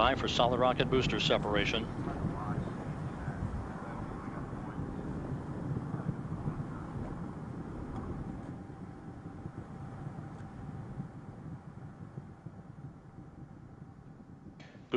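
Rocket engines roar with a deep, steady rumble that slowly fades.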